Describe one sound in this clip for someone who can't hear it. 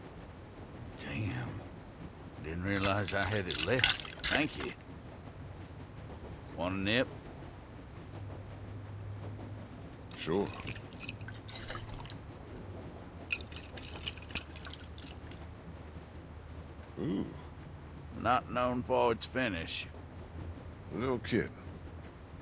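An elderly man speaks in a rough, weary voice.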